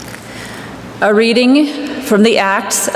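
A woman sings through a microphone in a large echoing hall.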